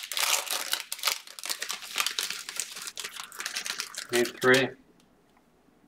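Plastic wrapping crinkles and rustles as hands tear open a card pack.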